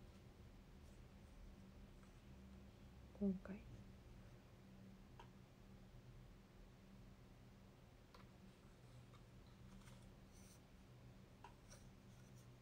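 A phone stand clicks and knocks as it is handled.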